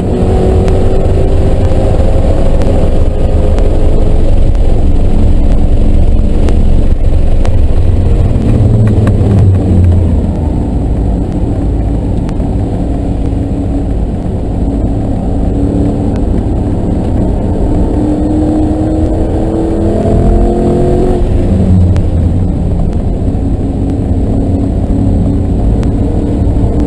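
Wind rushes past a moving car.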